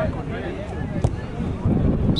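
A football thumps off a player's foot.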